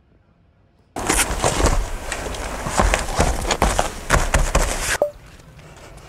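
A padded mat rustles and thumps as it is laid out.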